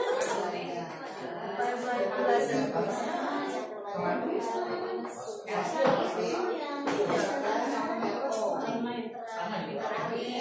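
Many men and women talk at once in small groups, overlapping in a busy murmur.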